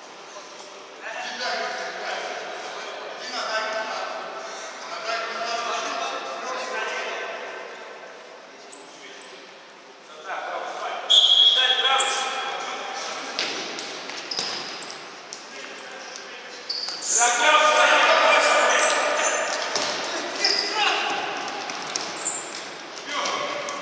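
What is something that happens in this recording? Young men shout and call out to each other across the echoing hall.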